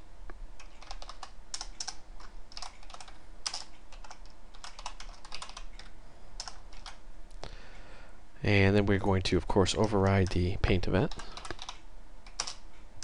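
A keyboard clicks with quick, uneven keystrokes.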